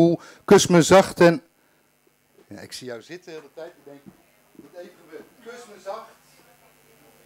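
A middle-aged man speaks loudly and close into a microphone.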